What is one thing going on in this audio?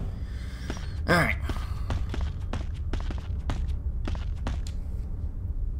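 Footsteps crunch on rough stony ground.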